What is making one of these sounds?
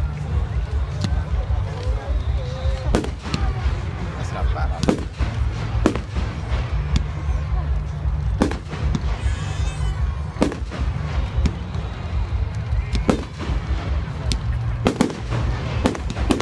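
Fireworks bang and crackle overhead.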